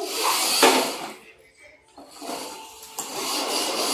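A toy car rolls across a hard floor.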